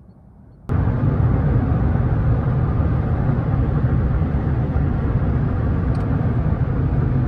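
A car drives fast along a highway, with a steady low rumble of road and wind noise.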